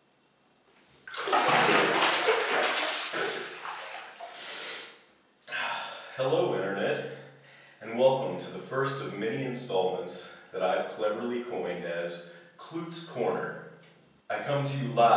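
A young man talks with animation close by, in a small echoing room.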